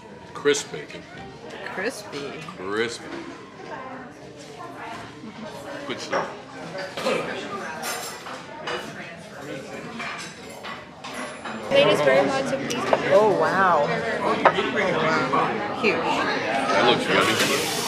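People chatter in the background of a busy room.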